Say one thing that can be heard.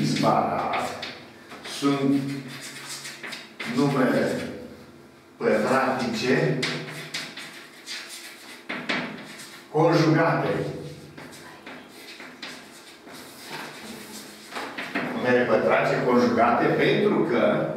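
An older man speaks calmly and explains nearby.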